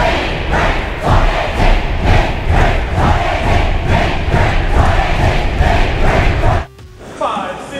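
A large crowd claps in a steady rhythm.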